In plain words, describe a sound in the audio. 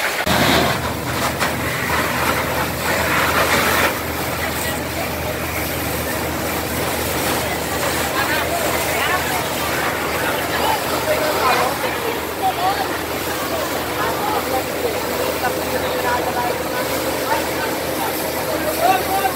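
Fire hoses spray water in a steady hissing rush.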